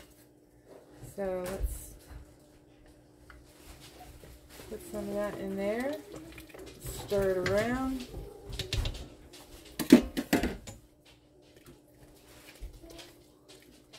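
A wooden spoon scrapes and knocks inside a metal pot.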